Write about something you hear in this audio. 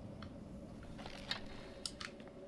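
A bowstring creaks as it is drawn back.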